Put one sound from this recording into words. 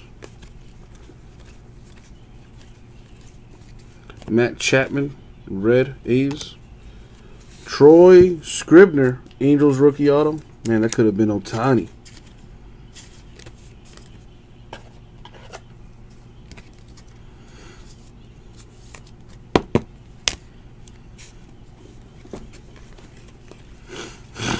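Trading cards rustle and click softly as hands shuffle through them.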